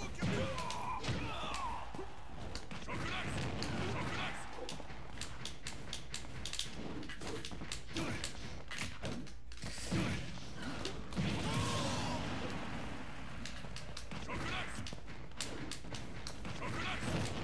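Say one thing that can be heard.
Video game punches and kicks land with sharp thuds.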